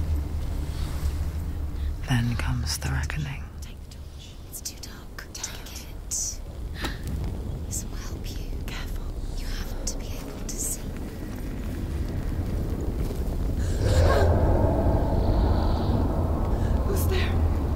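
A torch fire crackles and roars nearby.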